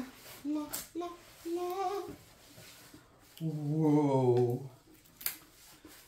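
A plastic sheet crinkles and rustles as it is unrolled.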